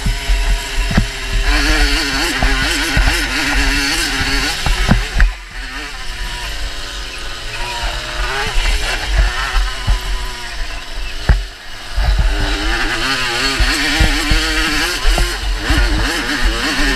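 Wind buffets loudly against a helmet.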